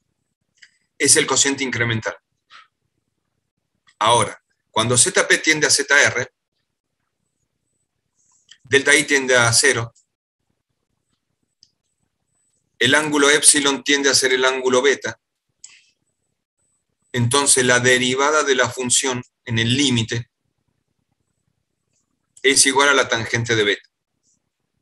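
An elderly man speaks calmly through an online call, in short bursts with pauses.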